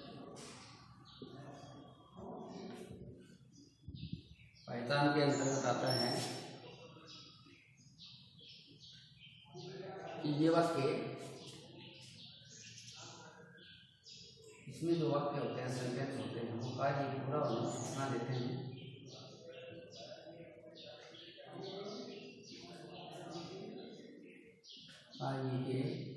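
An elderly man speaks calmly and clearly, as if teaching, close by.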